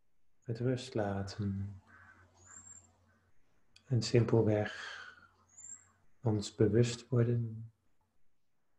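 A man speaks calmly and slowly into a microphone over an online call.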